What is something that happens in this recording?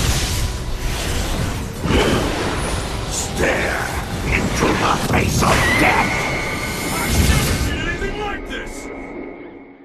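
Heavy punches land with loud, booming thuds.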